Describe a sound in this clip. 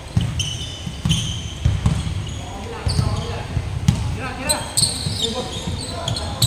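Players call out to each other across an echoing hall.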